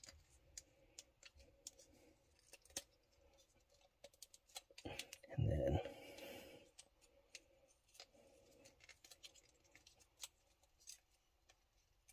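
Plastic parts of a toy click and creak as hands move them.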